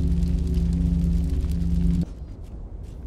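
A machine hums loudly with a deep drone, then cuts off abruptly.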